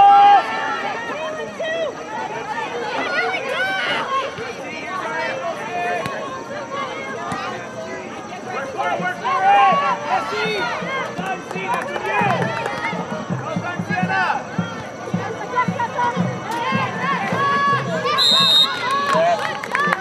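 A crowd of spectators shouts and cheers nearby outdoors.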